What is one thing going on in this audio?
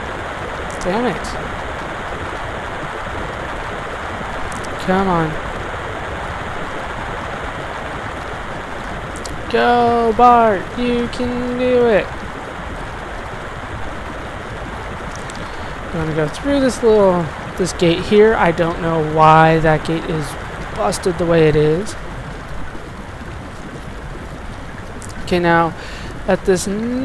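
Water splashes steadily as someone wades through it.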